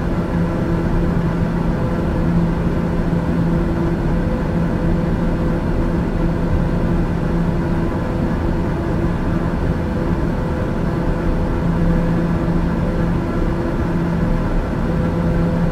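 Air rushes steadily past the cabin.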